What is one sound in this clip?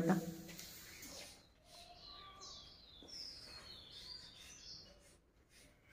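Chalk scratches on a blackboard.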